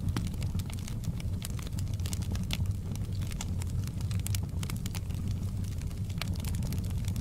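Burning logs crackle and pop sharply.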